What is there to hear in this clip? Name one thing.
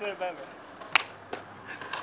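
Two hands slap together in a high five.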